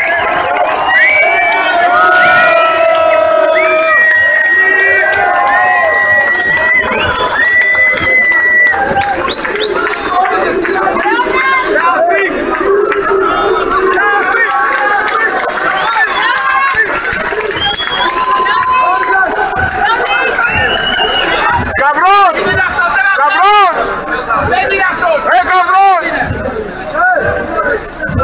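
A crowd of fans sings and chants loudly outdoors at night.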